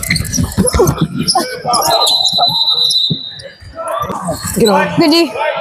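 Sneakers squeak on a hardwood court.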